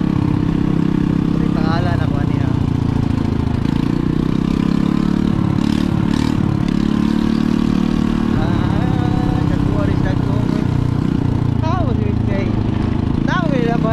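A motorcycle engine runs with a steady low rumble.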